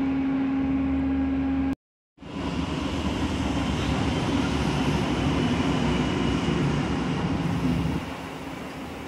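A train rumbles along the tracks, loud and close, then quiets.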